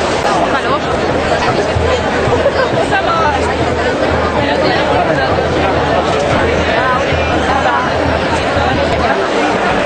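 A large crowd of men and women chatters and shouts close by outdoors.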